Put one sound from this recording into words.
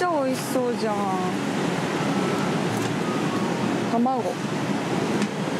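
A metal lid clinks against a serving dish.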